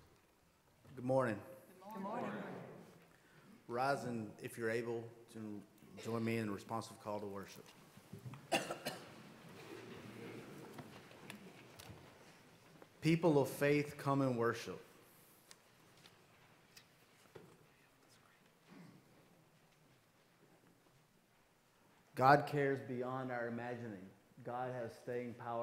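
A man speaks calmly into a microphone, with pauses, in a large echoing room.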